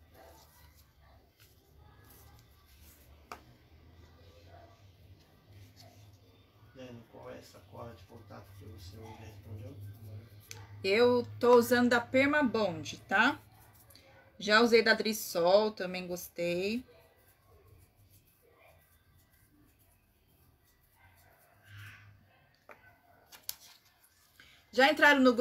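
Paper rustles as a strip is handled.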